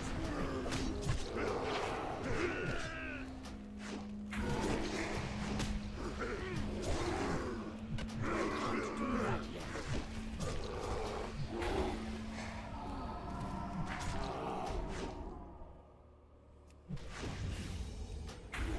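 Blows and magic effects clash rapidly in a fantasy battle.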